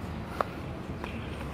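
A golf putter taps a ball with a light click.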